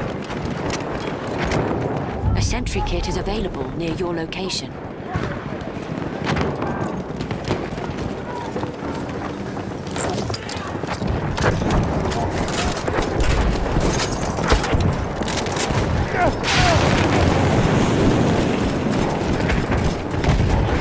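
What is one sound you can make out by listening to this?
A machine gun fires in rapid bursts.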